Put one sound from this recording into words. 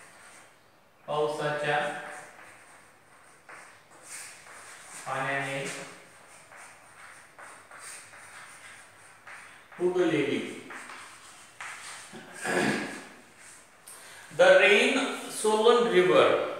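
A man speaks calmly and clearly, nearby in an echoing room.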